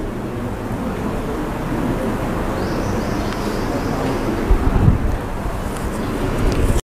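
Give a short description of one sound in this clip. An elderly man speaks calmly into a microphone, close by.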